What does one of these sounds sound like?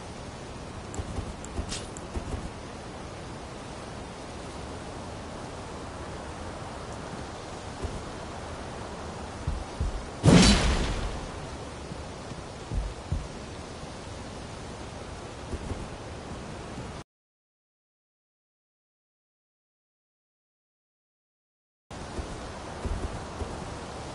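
Footsteps thud on stone and grass.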